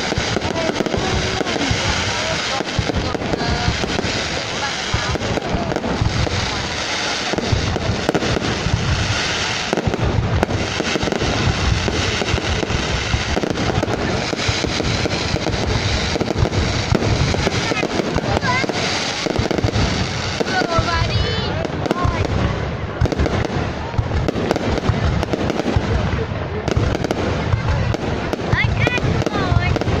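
Fireworks burst with rapid booms and crackles.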